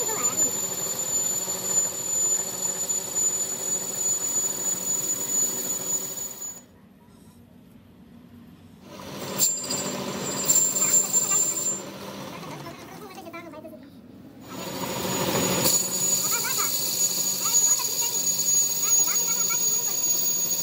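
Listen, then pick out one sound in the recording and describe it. A metal lathe whirs steadily as a cutting tool shaves a spinning tube.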